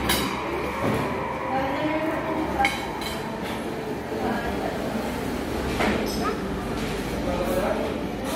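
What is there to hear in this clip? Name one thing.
A young girl speaks close by.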